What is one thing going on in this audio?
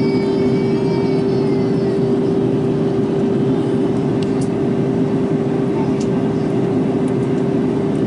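Jet engines hum with a steady droning tone.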